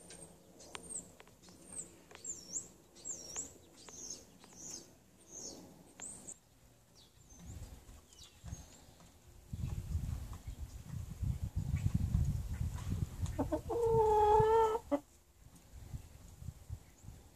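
Hens cluck and murmur softly close by.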